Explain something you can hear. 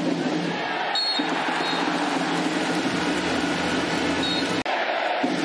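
A referee's whistle blows short sharp blasts.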